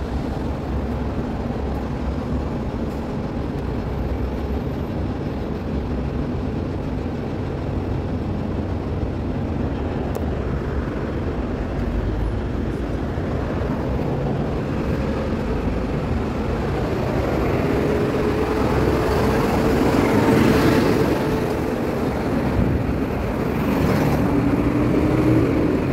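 Road traffic rumbles steadily nearby outdoors.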